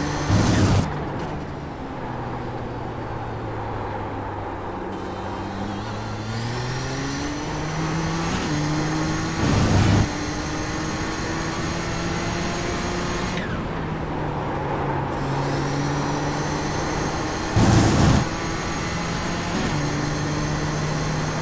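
A race car engine drones and rises in pitch as the car speeds up, then drops as it slows.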